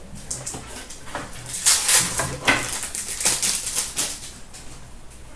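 Foil card packs crinkle and rustle in someone's hands.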